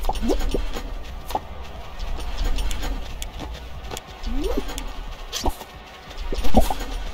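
Short cartoonish game sound effects squeak and boing.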